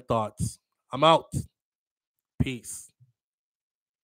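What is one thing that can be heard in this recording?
A man speaks with animation, close to a microphone.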